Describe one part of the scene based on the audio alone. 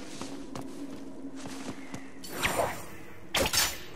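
A sword swishes through the air with sharp whooshes.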